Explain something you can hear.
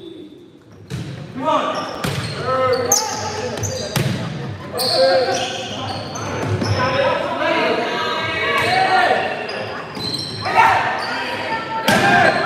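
Young players and spectators shout and cheer.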